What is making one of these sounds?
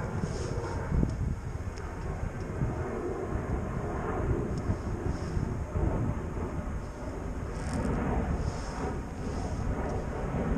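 A fishing reel clicks as a line is wound in.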